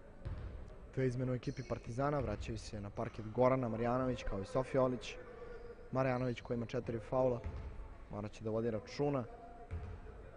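Spectators chant loudly in an echoing hall.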